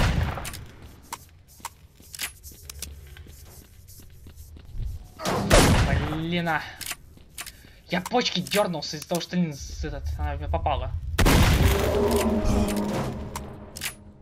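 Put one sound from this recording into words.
Shells click into a shotgun.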